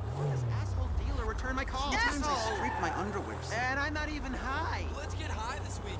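Tyres squeal on the road during a skid.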